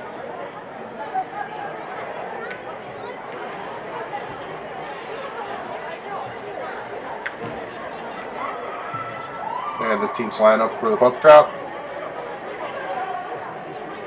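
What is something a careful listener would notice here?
A crowd of spectators murmurs and chatters in an echoing rink.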